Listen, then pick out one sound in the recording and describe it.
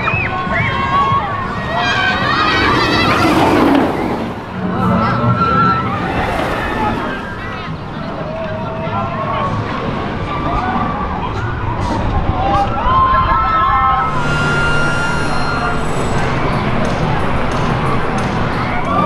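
Riders scream on a roller coaster.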